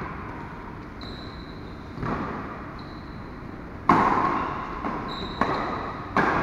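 Sports shoes squeak on a court mat.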